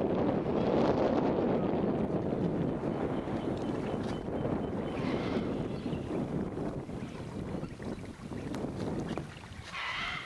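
Wind blows outdoors over the water.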